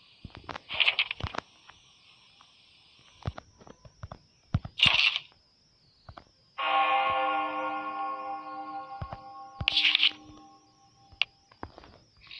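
Interface clicks and chimes sound as menu items are opened.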